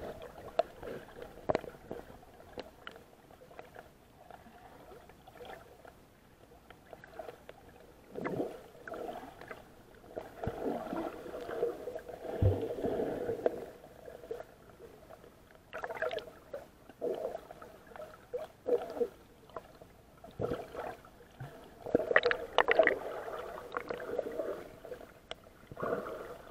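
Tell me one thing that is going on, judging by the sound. Water gurgles and rumbles in a muffled way underwater.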